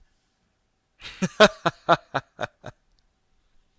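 A young man laughs in short bursts close to a microphone.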